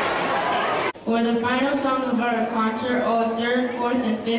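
A choir of children sings together.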